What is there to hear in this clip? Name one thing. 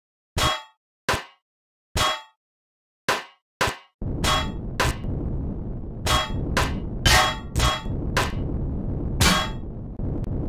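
A salvage tool zaps in short, sharp bursts.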